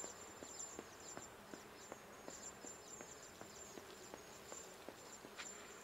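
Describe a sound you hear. Quick footsteps run across a hard floor in a large echoing hall.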